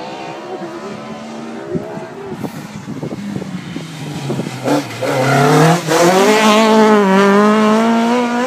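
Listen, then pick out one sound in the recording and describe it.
A second rally car engine revs hard and roars past close by.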